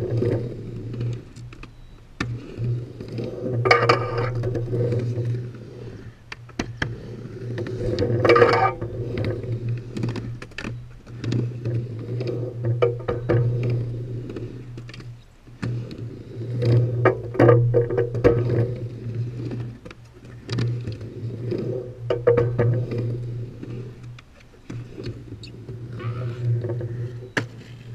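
A skateboard clacks against the ramp edges.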